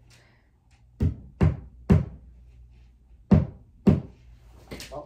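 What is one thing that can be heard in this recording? A hammer knocks a nail into a wall with sharp, loud blows.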